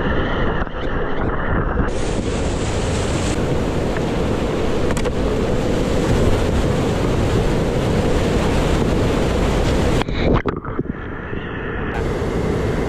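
A paddle splashes and digs into rushing water.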